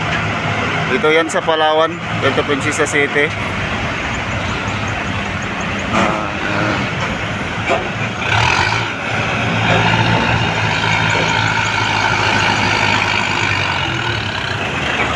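Tractor diesel engines rumble steadily as they roll past close by.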